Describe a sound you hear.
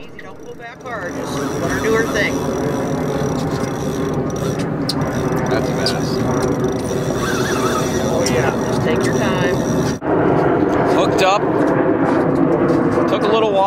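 Outboard motors hum steadily.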